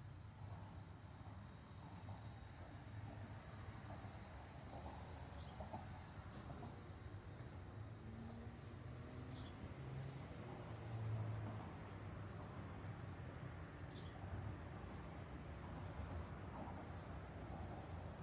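A paintbrush strokes softly across a painted board.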